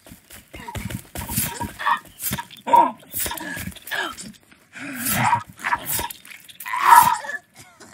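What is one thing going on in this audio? A spear strikes flesh with dull thuds.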